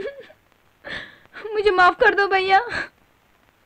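A young woman sobs and cries out.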